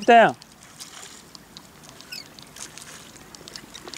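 A paddle dips and splashes in calm water.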